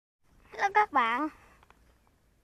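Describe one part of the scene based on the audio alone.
A young girl shouts excitedly close by.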